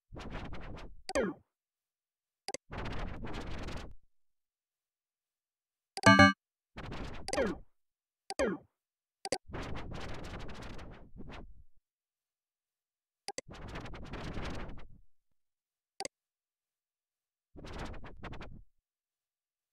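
Short electronic game sound effects play in bursts, each one followed by a silence.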